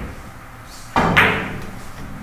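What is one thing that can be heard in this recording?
A cue strikes a billiard ball with a sharp knock.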